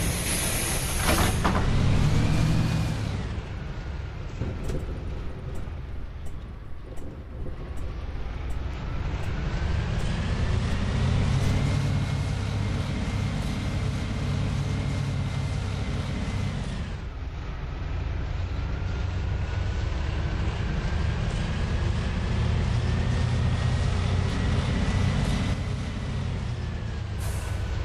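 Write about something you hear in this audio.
A bus engine hums and rises and falls in pitch as the bus speeds up and slows down.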